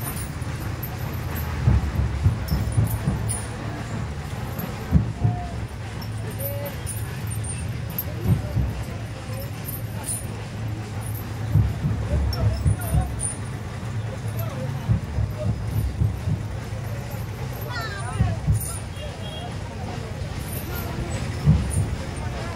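Wind buffets the microphone outdoors in low gusts.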